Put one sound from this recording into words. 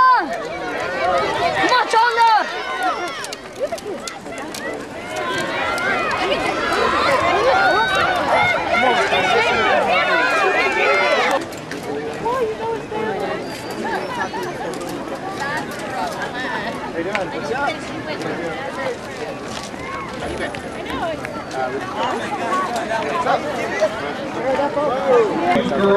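A crowd of spectators chatters steadily in the distance outdoors.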